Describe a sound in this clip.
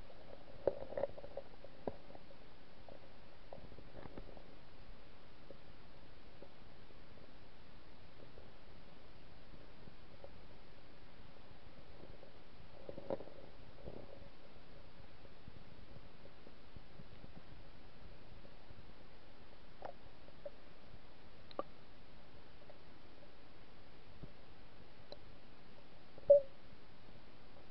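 Water hisses steadily underwater.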